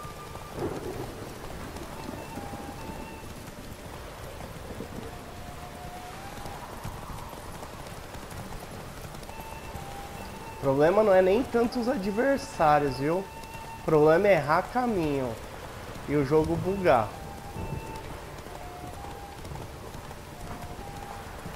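Horse hooves pound steadily on a dirt path.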